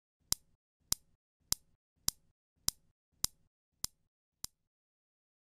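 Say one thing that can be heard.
Metal balls click against each other in a steady rhythm.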